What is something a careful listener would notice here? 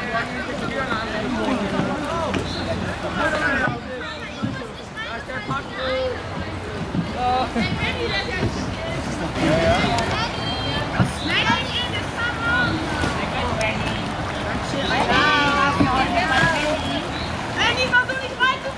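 Children and teenagers chatter and call out to each other outdoors.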